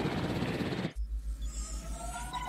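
Electronic tones warble and buzz.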